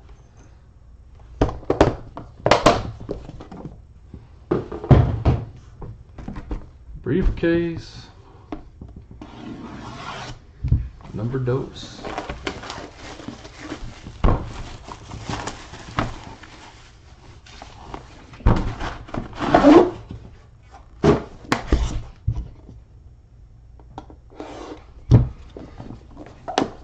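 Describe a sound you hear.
A metal case clicks and clatters as hands handle it.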